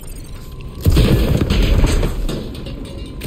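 Jet thrusters roar in a loud burst.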